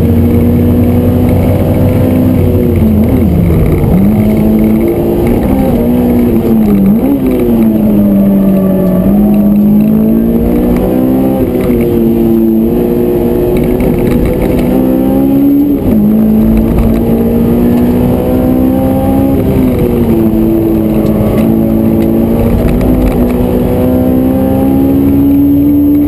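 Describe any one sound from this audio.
A car engine roars loudly from inside the cabin, revving up and down through gear changes.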